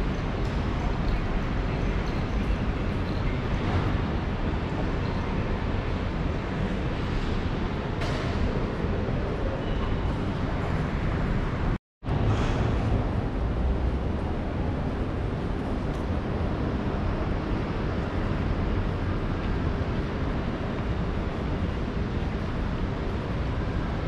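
Footsteps of passers-by tap on a hard pavement close by.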